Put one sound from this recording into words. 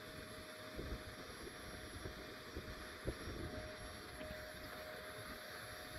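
A vacuum hose hums, sucking up bees.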